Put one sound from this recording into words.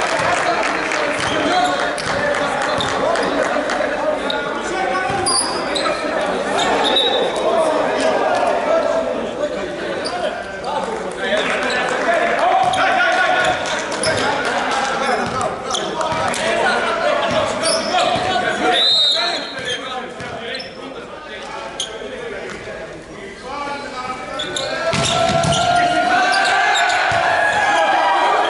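Sports shoes squeak on a hard floor.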